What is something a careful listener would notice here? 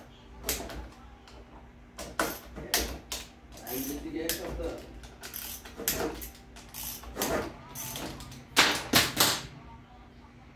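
Small metal parts click and clatter as they are handled.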